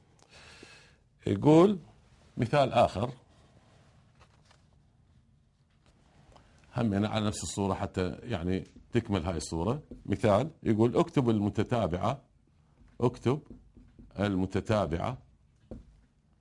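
A middle-aged man speaks calmly, as if explaining.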